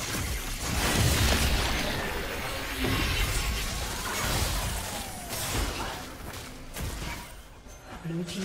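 Magic spell effects crackle and whoosh in quick bursts.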